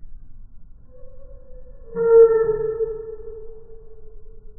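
A small bird flies past with a brief buzzing chirp.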